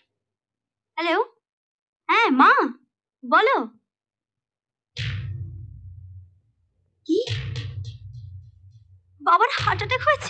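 A young woman speaks into a telephone.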